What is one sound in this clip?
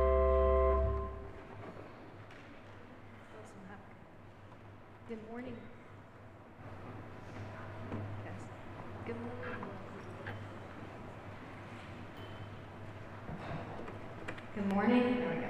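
People murmur and chatter quietly in a large echoing hall.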